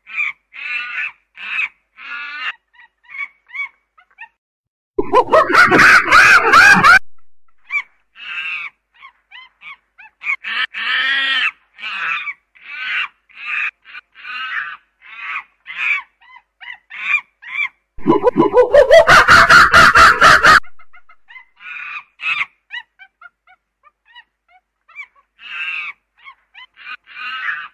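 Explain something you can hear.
A chimpanzee hoots and screams loudly, in repeated bursts.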